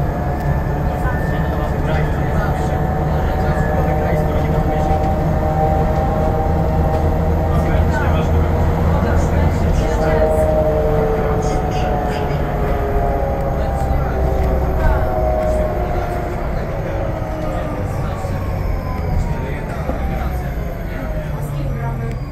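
Tyres roll on the road beneath the bus.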